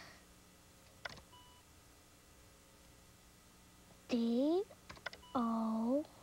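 Computer keys click as they are pressed.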